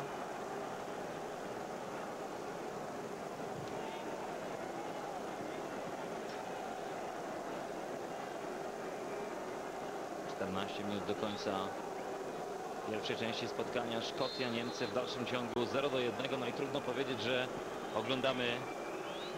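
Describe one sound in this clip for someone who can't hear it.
A large crowd murmurs and roars steadily in an open stadium.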